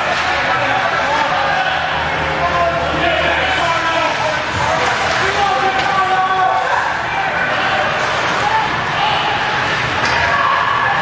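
A crowd of spectators chatters and cheers in an echoing arena.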